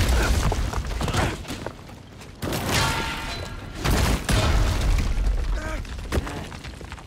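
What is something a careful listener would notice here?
Heavy crashes and rumbling impacts boom.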